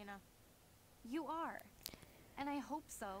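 A woman answers coolly.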